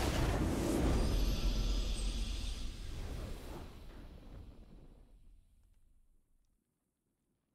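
A triumphant fanfare swells and then slowly fades away.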